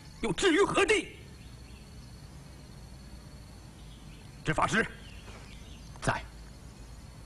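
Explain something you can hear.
A man speaks sternly in short bursts.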